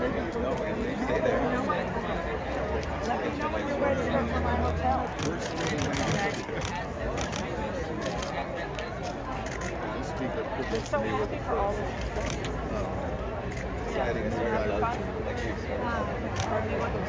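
Several adults chat and greet each other nearby.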